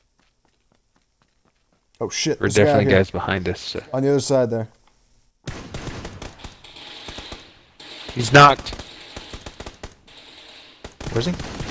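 Rifle shots fire in short bursts.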